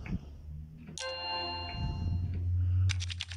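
A bright chime rings out once and fades.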